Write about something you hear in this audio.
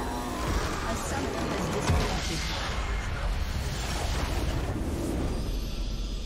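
Game spell effects crash and whoosh in a burst of battle noise.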